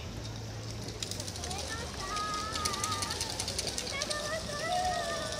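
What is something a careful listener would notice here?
Wooden hand clappers clack rapidly in rhythm.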